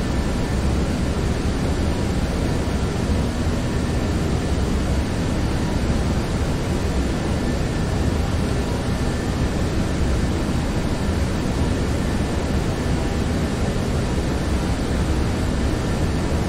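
Jet engines roar steadily, with a constant rush of air.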